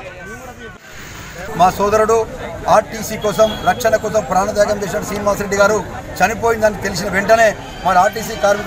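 A man speaks loudly and forcefully into microphones close up.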